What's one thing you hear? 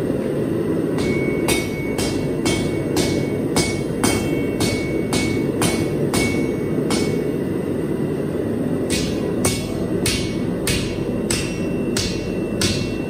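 A hammer rings sharply on an anvil in quick, steady blows.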